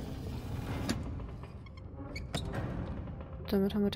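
A small metal hatch clicks shut.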